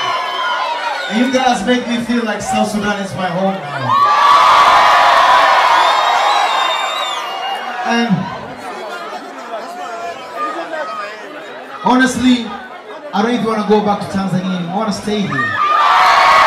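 A man sings loudly into a microphone over a loudspeaker in a large echoing hall.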